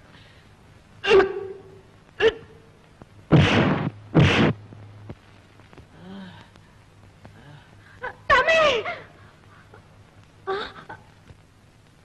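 A man shouts and groans.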